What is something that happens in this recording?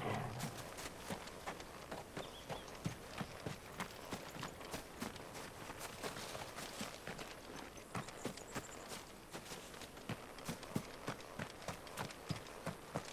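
Footsteps crunch on dry ground at a quick, steady pace.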